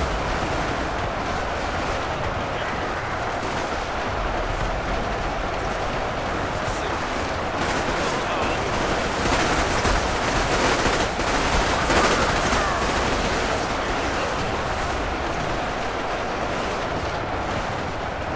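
A huge battle roars steadily with a dense clatter of clashing.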